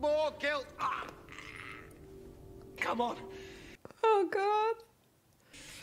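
A middle-aged woman laughs tearfully.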